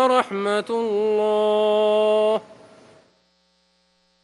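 A man chants in a long, drawn-out melodic voice through a microphone, echoing in a large hall.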